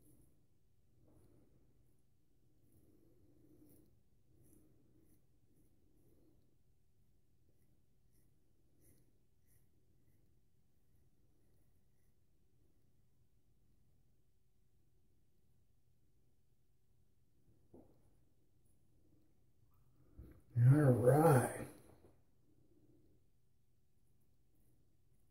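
A razor scrapes softly over stubble.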